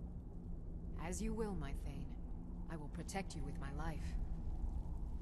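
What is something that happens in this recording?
A young woman speaks calmly and firmly.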